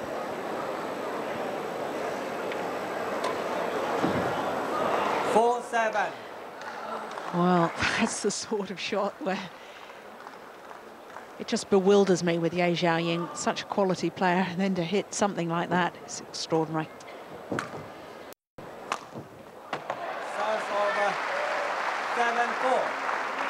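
A racket strikes a shuttlecock with a sharp pop.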